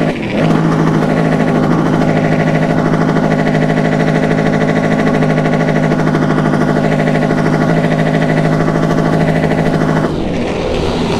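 A motorcycle engine runs with a steady, even drone.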